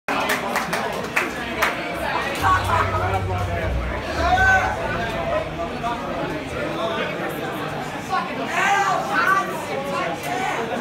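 A metal band plays loudly with distorted guitars in a large echoing hall.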